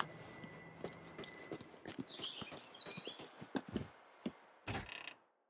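Footsteps tap quickly on stone paving.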